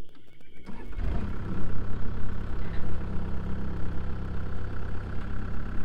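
A diesel engine starts up and idles with a steady low rumble.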